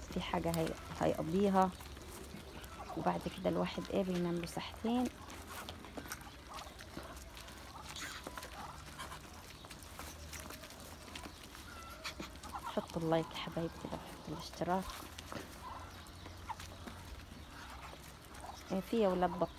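Ducks peck and scratch at dry ground.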